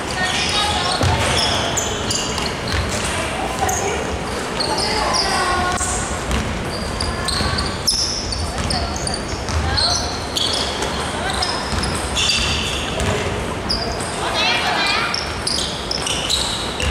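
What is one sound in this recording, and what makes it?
Young women call out to each other across a large echoing hall.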